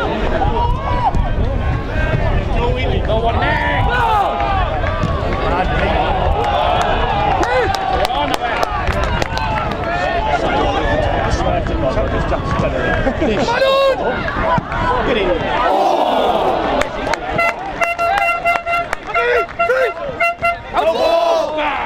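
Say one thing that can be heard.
Male football players shout to each other outdoors.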